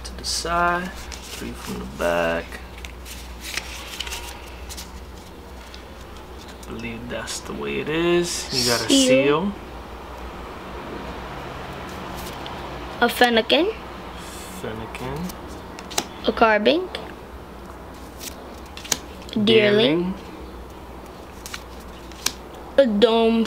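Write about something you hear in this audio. Playing cards rustle and slide against each other in someone's hands.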